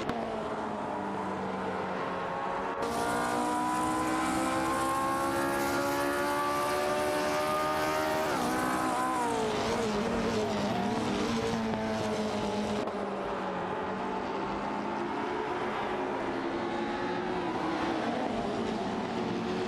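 A racing car engine whines loudly, rising in pitch as it speeds up and dropping sharply as it brakes into a bend.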